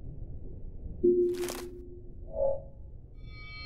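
A short electronic chime sounds as a small item is picked up.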